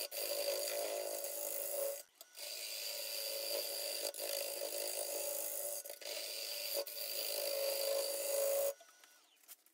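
A wood lathe tool scrapes and hisses against spinning wood.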